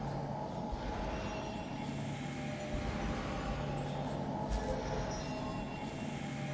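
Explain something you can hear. Magical blades whir and hum steadily around a figure.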